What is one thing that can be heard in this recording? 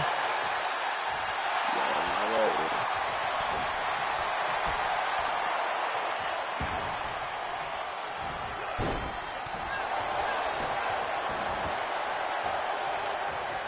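A large crowd cheers and roars steadily throughout.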